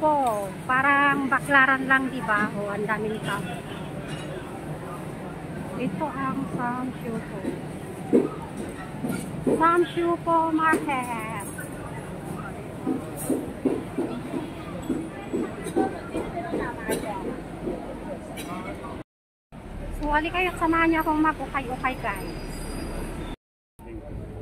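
A crowd murmurs and chatters on a busy street.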